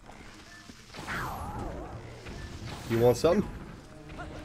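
A bow string twangs as an arrow is loosed.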